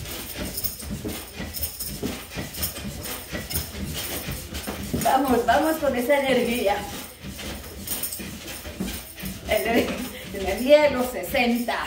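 A mini trampoline thumps and creaks rhythmically.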